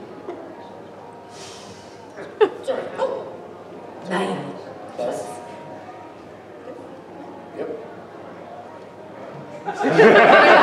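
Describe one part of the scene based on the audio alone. A woman speaks with animation through a microphone and loudspeakers in a large echoing hall.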